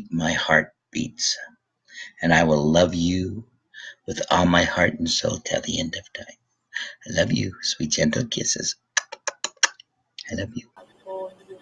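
A middle-aged man talks calmly into a microphone close by.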